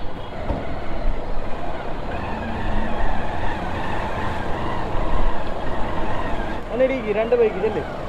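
A motorcycle engine runs at low speed.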